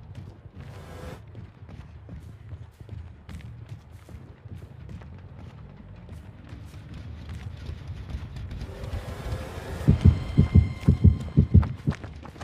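Footsteps tread steadily over rough ground.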